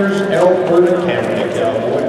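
A horse gallops on soft dirt.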